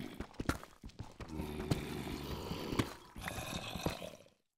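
A pickaxe chips repeatedly at stone.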